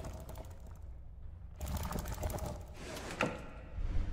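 Stiff paper rustles and unfolds on a wooden board.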